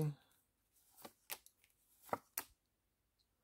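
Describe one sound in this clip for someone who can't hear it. Playing cards are laid down softly with light taps.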